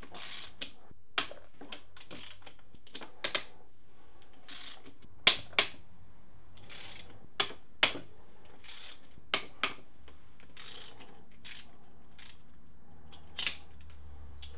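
Metal tools click and clank against an engine block.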